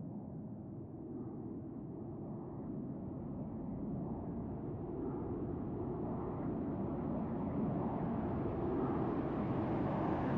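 A jet engine roars steadily, growing louder and brighter as the plane draws nearer.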